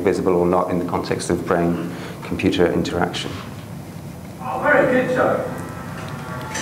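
A man speaks through a microphone in an echoing lecture hall.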